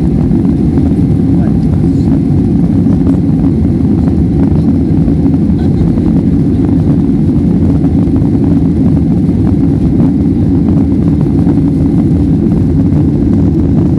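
Jet engines roar with a steady, low rumble, heard from inside an airliner cabin.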